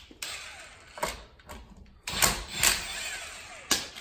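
A cordless impact wrench rattles as it spins off lug nuts.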